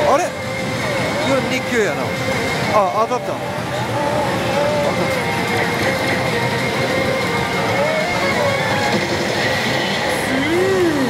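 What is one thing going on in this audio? A slot machine plays loud electronic music and jingles.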